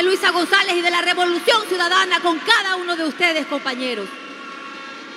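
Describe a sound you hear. A young woman shouts with animation through a microphone and loudspeakers.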